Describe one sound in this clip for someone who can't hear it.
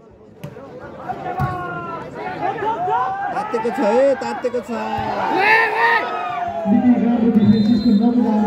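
A large outdoor crowd cheers and shouts loudly.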